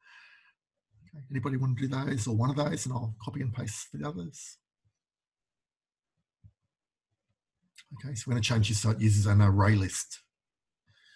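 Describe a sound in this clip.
A man speaks calmly and explains, close to a microphone, with pauses.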